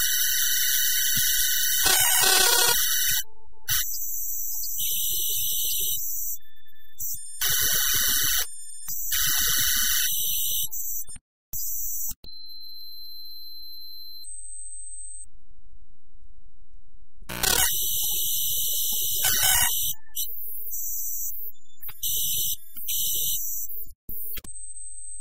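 Harsh electronic noise plays in loud bursts with short silent gaps.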